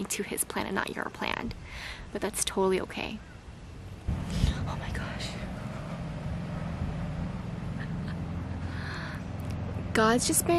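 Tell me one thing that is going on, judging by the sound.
A young woman speaks close by, calmly.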